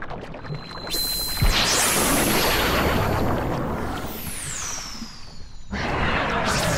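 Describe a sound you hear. A loud magical blast roars and whooshes.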